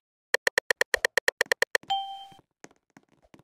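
A quick run of electronic ticks plays, ending in a short chime.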